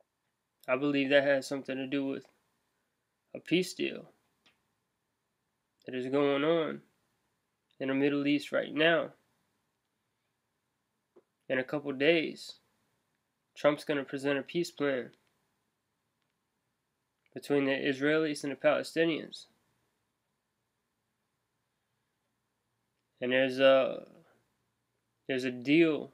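A young man talks calmly close to a microphone, in short bursts with pauses.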